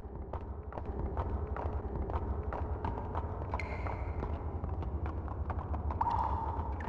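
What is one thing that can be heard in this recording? Footsteps run quickly across a hard floor in an echoing room.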